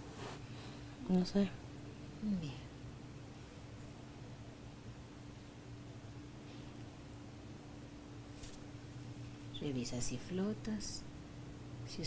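A woman snores in her sleep close by.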